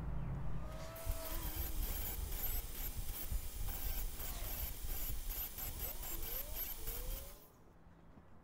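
An angle grinder whines as it cuts into metal.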